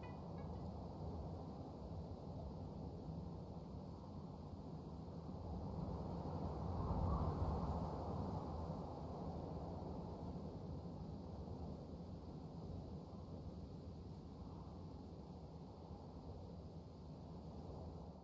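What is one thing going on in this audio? Wind rushes softly through the trees, swelling and easing.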